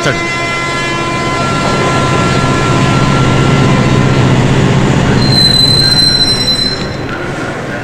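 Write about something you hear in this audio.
A diesel train engine rumbles loudly.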